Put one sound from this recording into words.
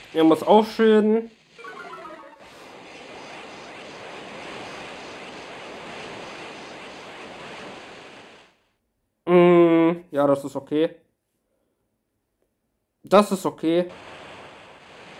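A young man talks with animation into a headset microphone, in short bursts.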